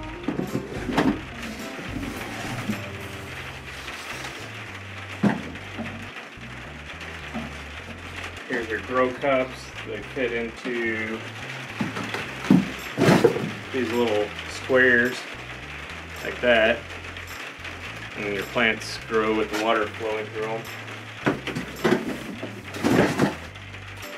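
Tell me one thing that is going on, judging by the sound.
Plastic pipes knock and clatter together.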